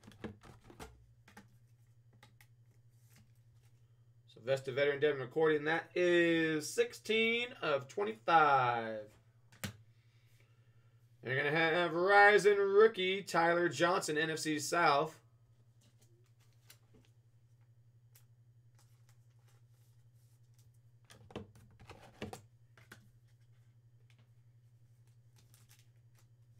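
Plastic card sleeves rustle and click as a card is slid out and handled.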